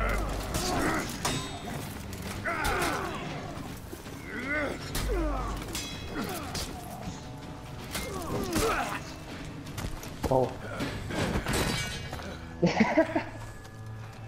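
Steel blades clash and ring in a fierce fight.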